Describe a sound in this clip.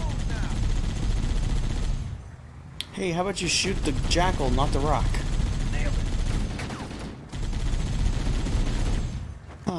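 A machine gun fires rapid bursts in a video game.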